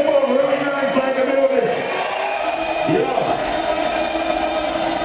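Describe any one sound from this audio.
A crowd sings and cheers loudly in a large echoing hall.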